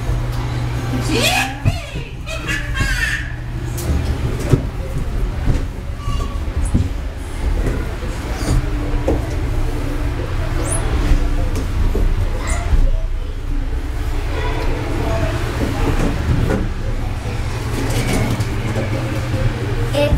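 Knees and hands thump on hollow plastic as a child crawls.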